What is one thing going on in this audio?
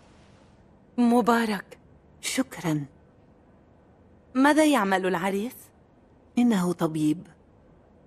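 A woman answers calmly, close by.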